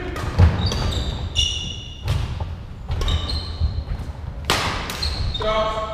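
Rackets hit a shuttlecock back and forth with sharp smacks in a large echoing hall.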